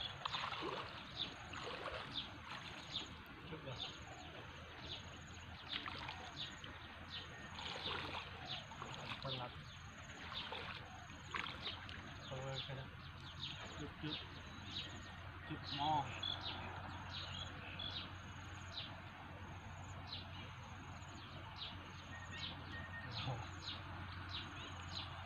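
Water splashes as a person wades through a shallow pond.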